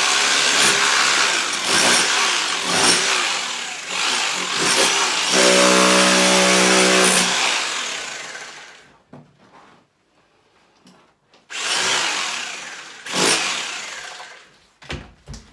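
A power tool grinds loudly against a wall in bursts.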